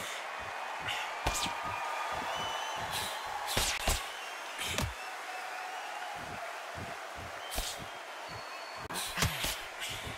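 A crowd murmurs and cheers steadily in the background.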